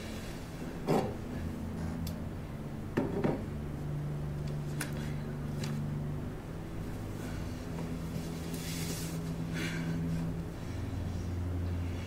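Bedding rustles as a woman climbs out of bed.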